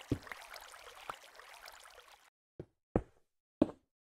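A stone block is set down with a dull thud.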